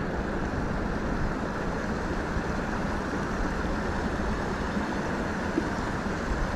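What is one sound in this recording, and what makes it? A fishing reel whirs as its handle is cranked.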